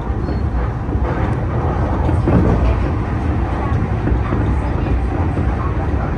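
Another train rushes past close by with a loud whoosh.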